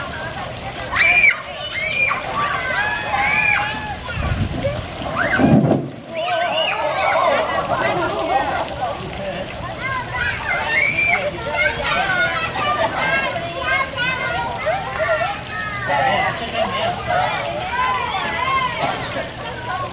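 Children shout and squeal excitedly outdoors.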